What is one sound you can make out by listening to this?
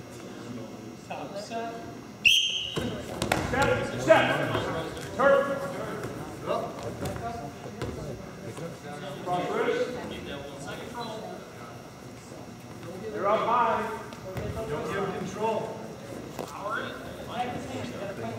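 Wrestlers' bodies thud and scuffle on a mat.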